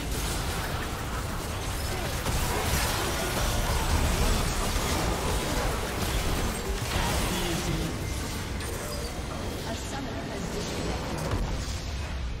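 Game spell effects crackle and blast in a loud battle.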